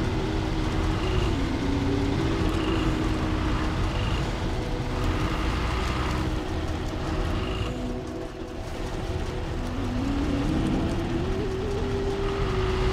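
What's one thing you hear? A heavy truck engine rumbles and strains, its pitch rising and falling.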